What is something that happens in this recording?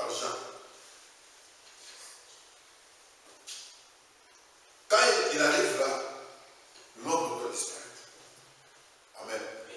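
A man speaks in short bursts, as if giving a talk.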